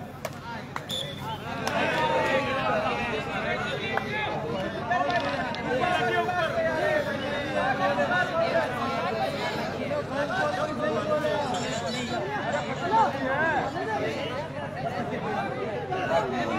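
A crowd of onlookers chatters in the background.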